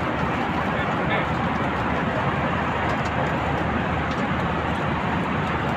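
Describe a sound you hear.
A plane's engines roar steadily inside the cabin.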